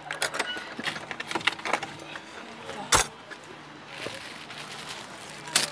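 Plastic bottles and cans clatter as a man handles them.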